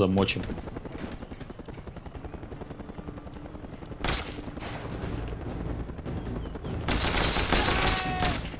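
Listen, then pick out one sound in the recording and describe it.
A helicopter's rotor thumps steadily nearby.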